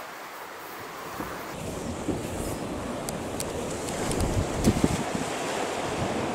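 Sea waves wash against rocks below.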